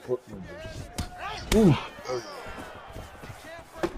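Punches and kicks land with dull thuds.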